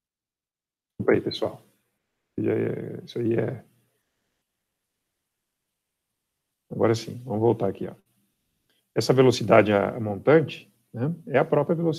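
A man speaks calmly over a microphone in an online call, with pauses.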